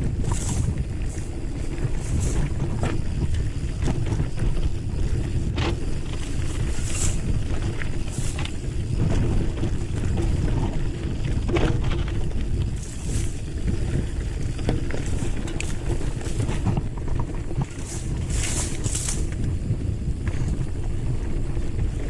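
Mountain bike tyres crunch over a dirt trail.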